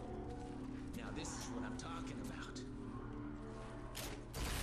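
A young man shouts with excitement.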